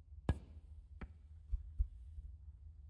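Snooker balls knock against each other and the cushions.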